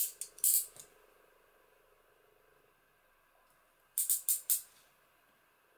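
A tool scrapes along paper against a metal ruler.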